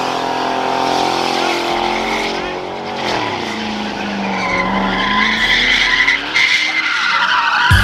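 Tyres squeal loudly as they spin on pavement.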